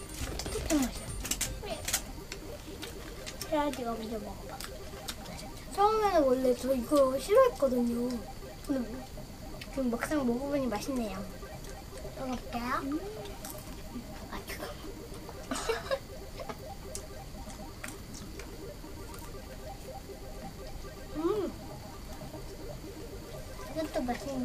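Food packaging rustles and crinkles.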